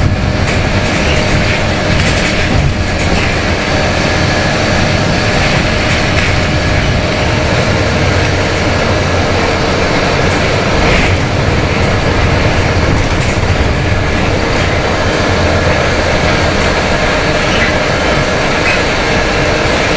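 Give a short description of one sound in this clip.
A bus engine rumbles steadily from inside the bus.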